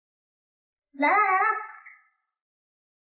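A young woman calls out loudly.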